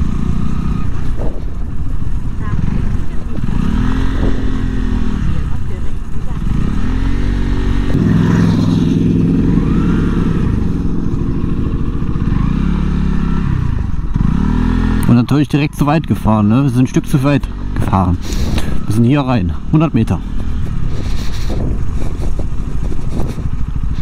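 Wind rumbles loudly past the rider.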